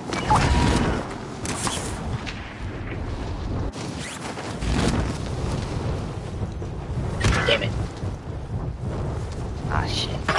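Wind rushes loudly past during a fast glide through the air.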